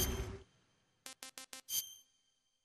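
Electronic menu blips tick in quick succession.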